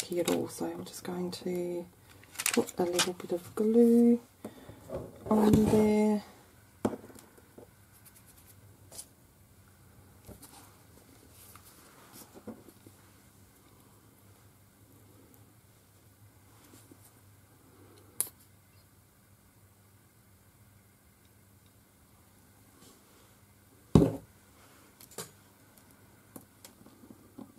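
Small paper pieces rustle and tap softly on a table.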